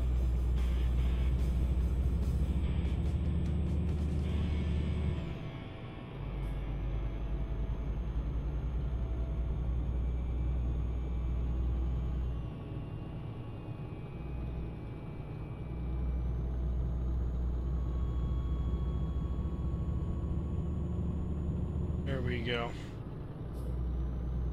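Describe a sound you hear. A diesel truck engine drones while cruising, heard from inside the cab.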